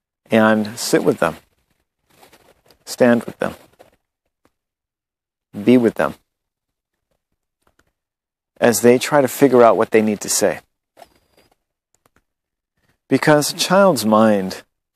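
A man speaks calmly and close up, in short phrases with pauses.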